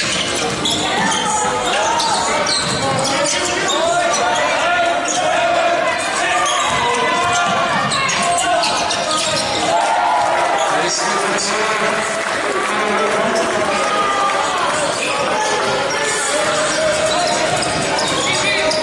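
Young men shout to each other across the court.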